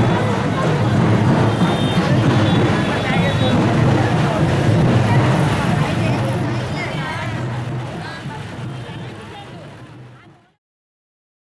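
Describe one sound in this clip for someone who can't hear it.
A crowd of people chatters loudly outdoors.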